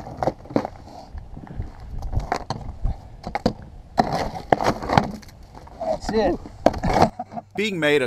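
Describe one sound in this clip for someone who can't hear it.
A hammer chips and knocks at ice with sharp cracks.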